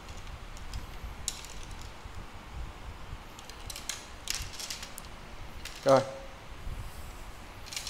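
Fishing rods knock and rattle against each other as they are handled.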